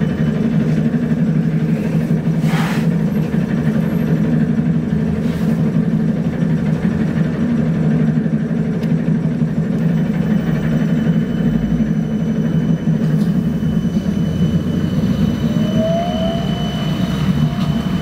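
Traffic rumbles past on a busy road.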